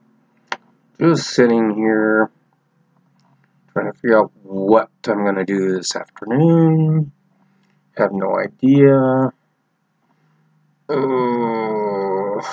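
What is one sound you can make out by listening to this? A middle-aged man speaks close to a microphone, with animation, in short bursts.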